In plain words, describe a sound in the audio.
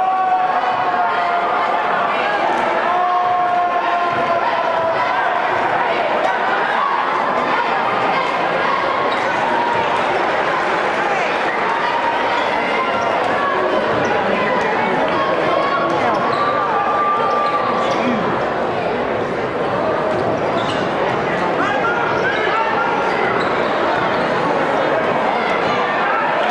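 A crowd cheers and chants loudly in an echoing gym.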